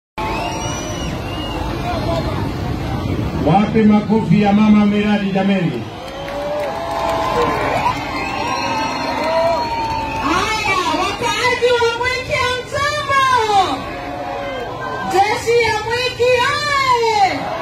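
A large outdoor crowd chatters and cheers noisily.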